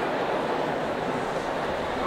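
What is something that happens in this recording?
A piano plays.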